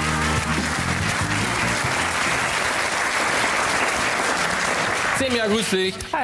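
A studio audience applauds and cheers loudly.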